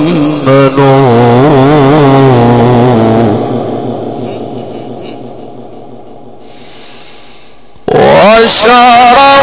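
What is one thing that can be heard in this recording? A man chants a long, drawn-out melody into a microphone, heard through loudspeakers with a lingering echo.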